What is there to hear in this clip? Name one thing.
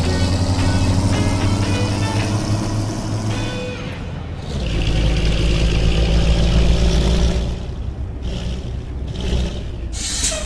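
A bus engine hums steadily while driving.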